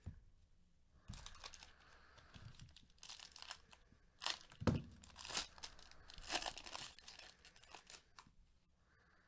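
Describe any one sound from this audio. A foil wrapper crinkles and tears loudly.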